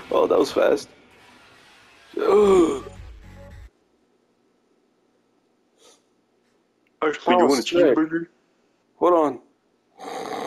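A young man speaks tensely and quietly up close.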